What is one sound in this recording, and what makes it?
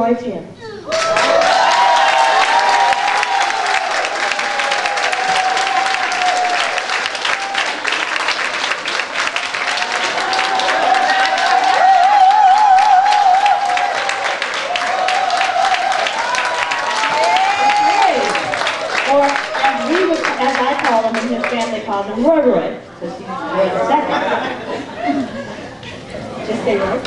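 A congregation sings together loudly in an echoing hall.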